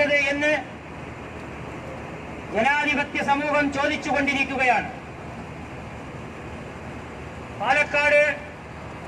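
A man shouts loudly in short bursts close by.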